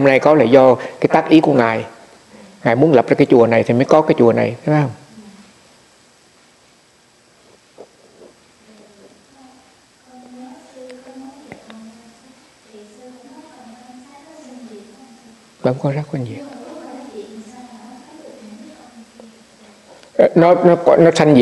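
An elderly man speaks calmly and warmly close to a microphone.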